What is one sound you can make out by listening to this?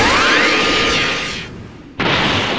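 An energy beam blasts with a loud roaring whoosh.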